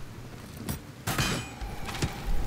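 A crossbow bolt hits with a sharp thud.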